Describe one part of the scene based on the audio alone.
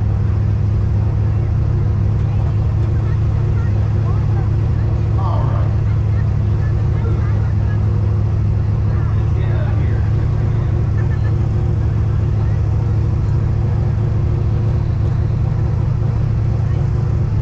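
A car engine idles with a deep, steady rumble close by.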